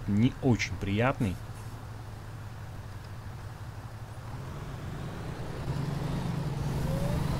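A bus engine idles with a low hum and grows louder as the bus pulls away.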